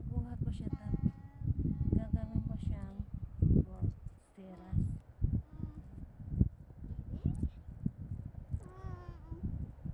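Small shells clink softly as a hand picks through them.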